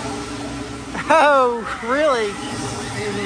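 People scream on a swinging amusement ride.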